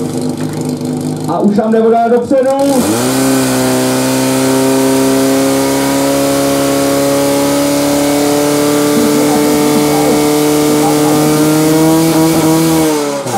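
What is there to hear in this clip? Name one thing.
A pump engine roars loudly and revs up.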